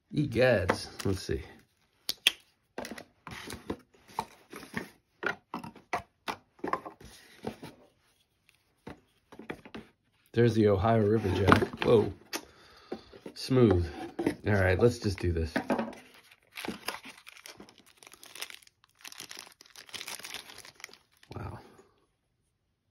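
Cardboard packaging scrapes and rustles as it is handled.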